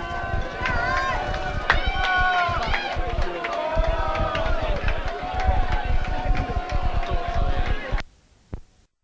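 A rock band plays loudly.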